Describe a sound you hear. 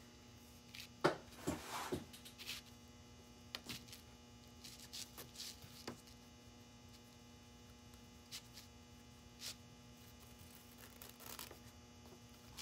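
Small wooden pieces tap lightly on a table.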